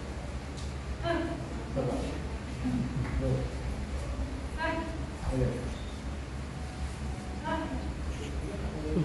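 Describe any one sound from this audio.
A young woman shouts sharply several times.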